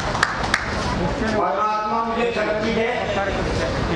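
An elderly man speaks forcefully into a microphone over a loudspeaker.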